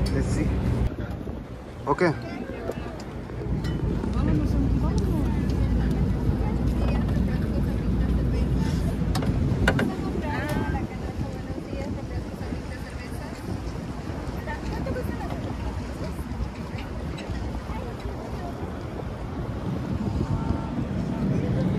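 Wind blows across the open deck.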